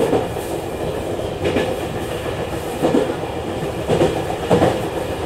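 Train wheels clack over rail joints at intervals.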